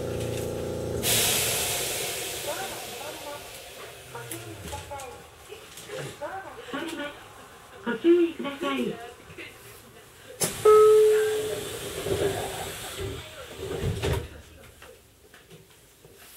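A train idles with a low hum at a platform.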